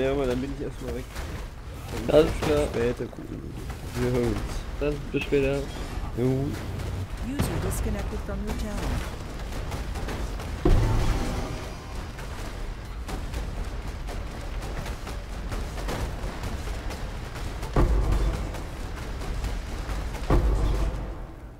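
Fiery magic blasts crackle and boom repeatedly.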